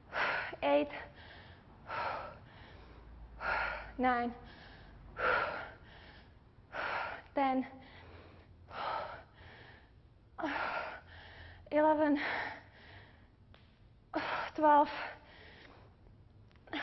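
A woman speaks calmly and clearly into a close microphone, in short phrases with pauses.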